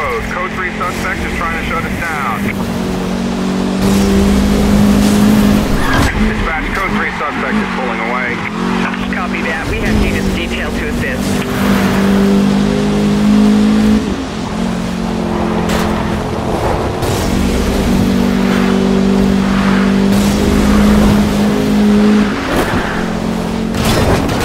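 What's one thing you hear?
A sports car engine roars at high revs, shifting gears as it speeds along.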